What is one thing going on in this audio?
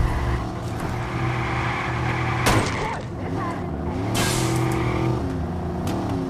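Tyres screech as a car skids around a corner.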